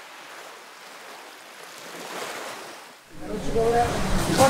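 Gentle waves wash softly over a shallow shore.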